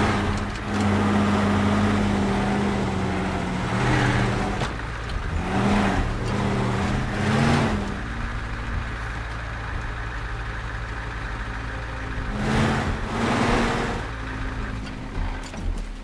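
A heavy truck engine rumbles and revs up and down.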